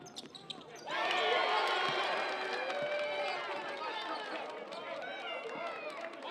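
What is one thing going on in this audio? A crowd of spectators cheers loudly in an echoing gym.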